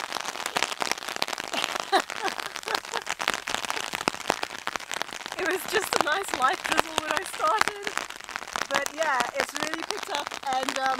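Raindrops patter on an umbrella overhead.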